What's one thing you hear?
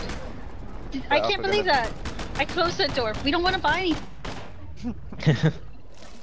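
A rifle fires in quick bursts of shots.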